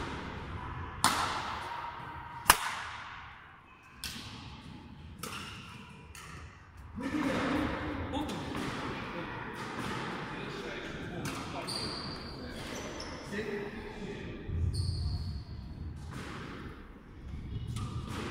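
Rackets smack a shuttlecock with sharp cracks that echo in a large hall.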